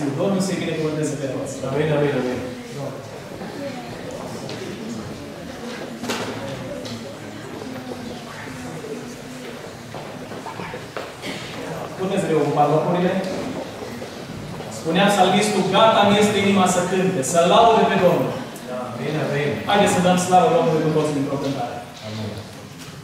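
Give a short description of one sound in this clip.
A man speaks steadily into a microphone, heard through loudspeakers in a large echoing hall.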